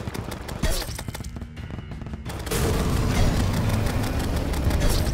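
Rapid game weapon shots crackle and pop.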